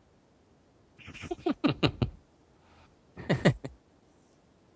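A young man laughs into a headset microphone.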